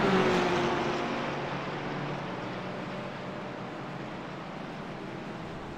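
Racing car engines roar past and fade away.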